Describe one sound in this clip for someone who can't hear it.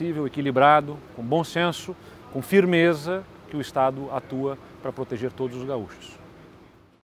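A young man speaks calmly and clearly into a close microphone.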